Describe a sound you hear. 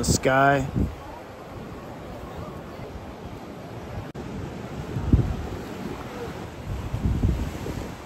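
Waves wash gently against the shore.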